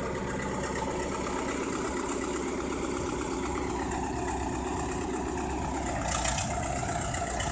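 A bulldozer engine idles with a steady, rumbling clatter close by.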